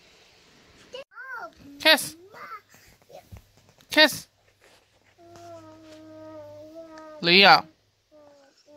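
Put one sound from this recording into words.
A young boy giggles and shrieks while playing.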